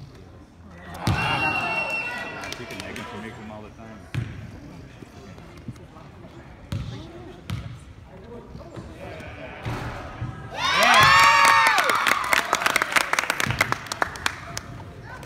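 A group of girls cheers and shouts loudly.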